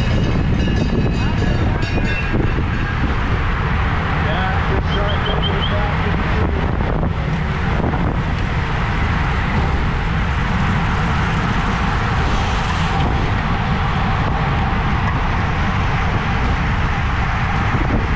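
Wind rushes loudly past, as from riding a bicycle at speed.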